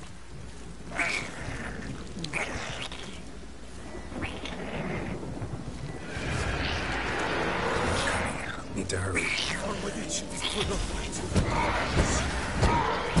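A magic blast crackles and whooshes.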